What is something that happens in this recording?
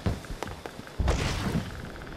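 A cape flaps in a rush of air.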